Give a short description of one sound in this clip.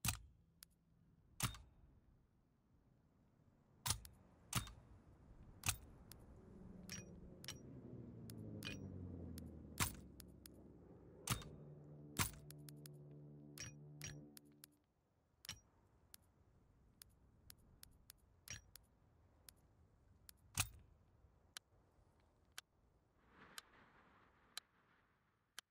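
Short, sharp menu clicks sound again and again.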